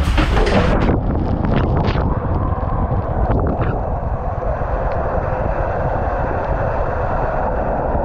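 Water rushes and splashes down a tube, echoing and muffled.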